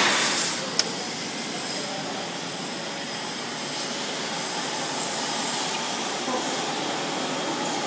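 Factory machinery hums and rattles steadily.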